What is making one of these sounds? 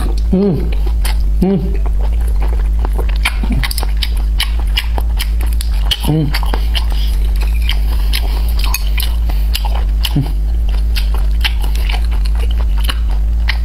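A young man chews and slurps food close to a microphone.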